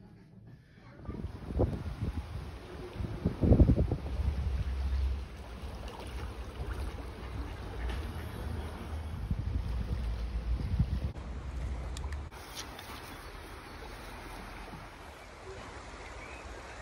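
A river rushes and churns.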